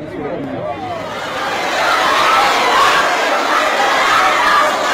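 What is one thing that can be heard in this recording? A crowd shouts and cheers in a large, echoing space.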